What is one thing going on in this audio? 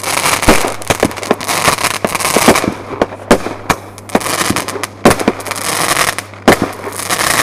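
Fireworks crackle and bang repeatedly nearby.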